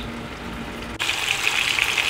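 Patties sizzle and crackle in hot oil.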